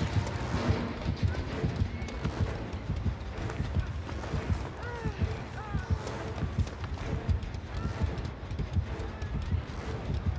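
Footsteps crunch slowly through snow and dry grass.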